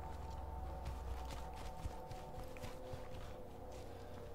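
Footsteps tread through grass and over dirt.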